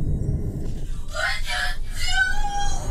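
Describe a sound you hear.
A young woman screams loudly up close.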